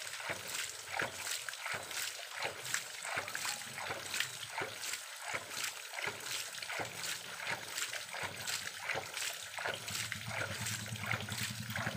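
Water sprays from a leaking pipe valve with a pulsing hiss.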